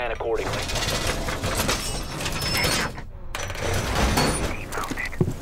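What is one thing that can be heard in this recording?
A heavy metal panel scrapes and clanks as it is pushed into place.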